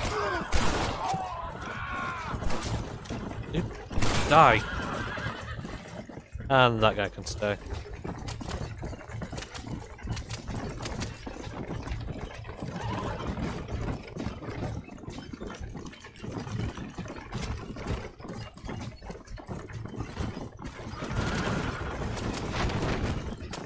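Horse hooves clop steadily on a dirt track.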